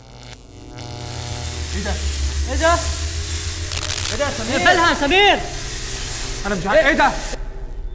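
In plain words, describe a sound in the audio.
Gas hisses out in a strong steady rush.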